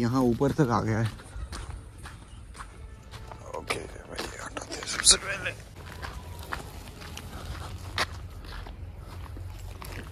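Flip-flops slap and scuff on a dirt path.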